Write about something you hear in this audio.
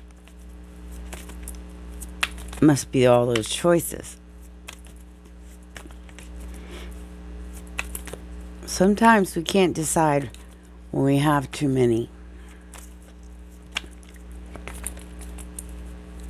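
Playing cards riffle and slap softly as they are shuffled by hand.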